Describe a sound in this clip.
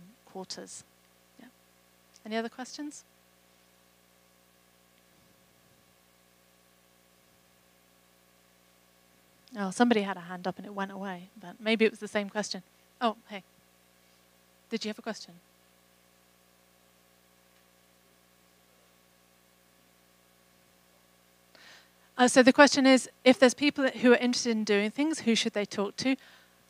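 A woman speaks into a microphone through a loudspeaker, calmly and with pauses.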